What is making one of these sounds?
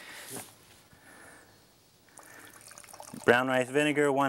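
Liquid pours and splashes into a bucket.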